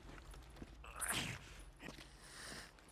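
A thrown object whooshes through the air.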